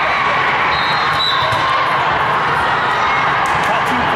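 A volleyball thuds as it is hit.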